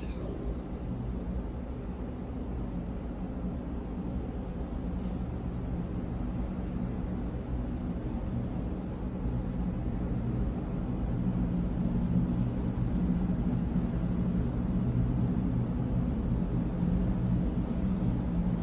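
A large ship's engines hum low and steady, growing slightly louder.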